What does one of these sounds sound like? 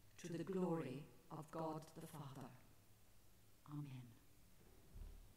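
An elderly woman reads out calmly through a microphone in an echoing hall.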